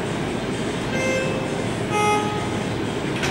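An elevator chime rings twice.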